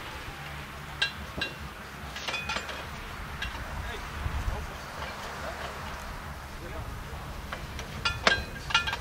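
Metal parts clank and ring as they are handled.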